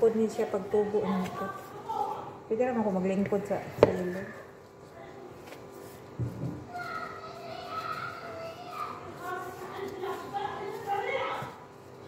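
Gloved hands squish and knead dough in a bowl.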